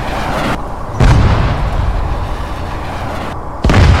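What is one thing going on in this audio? A huge explosion booms and rumbles, then fades.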